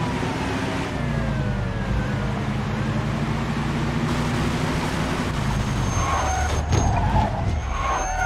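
An old car engine rumbles steadily as the car drives along.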